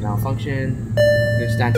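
An elevator chime rings on arrival.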